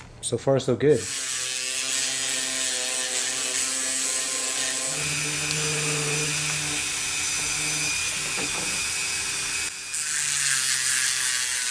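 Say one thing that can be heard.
A small rotary tool whirs with a steady high whine.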